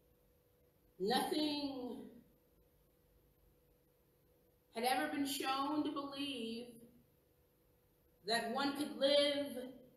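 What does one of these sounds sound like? A woman speaks slowly and calmly into a microphone, with long pauses.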